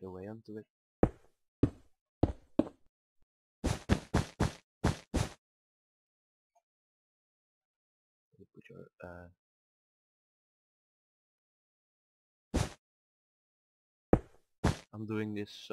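Stone blocks are placed with short, sharp clicks.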